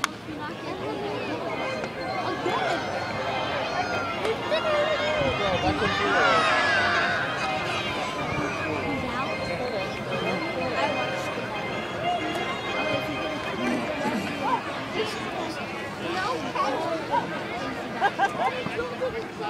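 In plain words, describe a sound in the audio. A crowd of spectators chatters in an open-air stadium.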